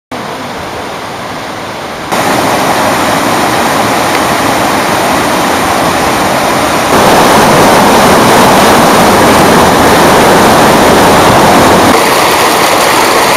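Water rushes and splashes steadily into pools.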